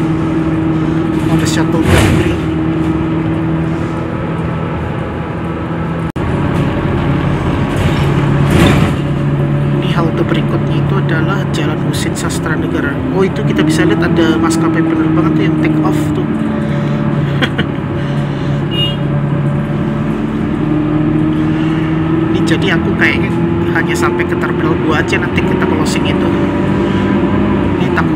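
A bus engine hums steadily, its pitch rising and falling as it drives.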